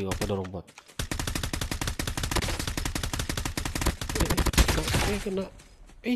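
A rifle fires in a rapid, sustained automatic burst.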